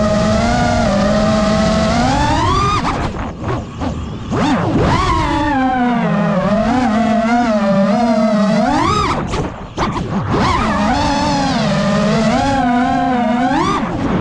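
Drone motors whine, rising and falling in pitch as the drone swoops and flips.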